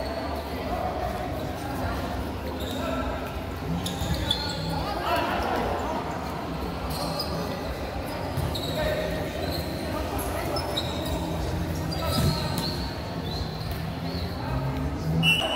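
Sneakers squeak sharply on an indoor court.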